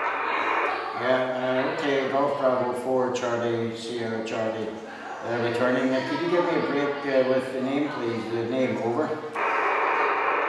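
An elderly man speaks calmly into a hand microphone, close by.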